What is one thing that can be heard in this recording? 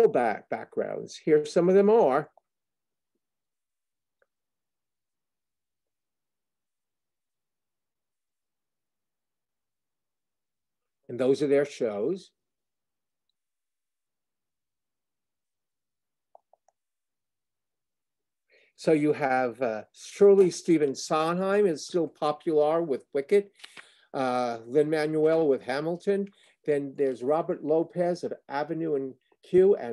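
A middle-aged man speaks calmly through an online call, with long pauses.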